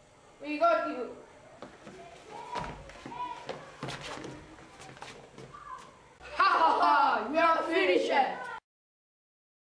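Young men shout and laugh loudly close by.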